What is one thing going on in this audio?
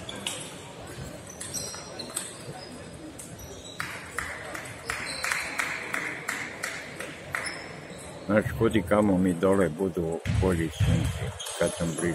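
A table tennis ball clicks sharply back and forth off paddles and a table in a large echoing hall.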